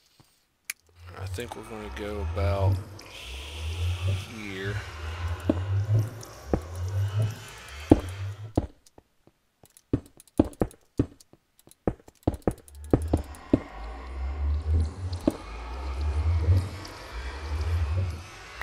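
Footsteps crunch steadily on rough stone.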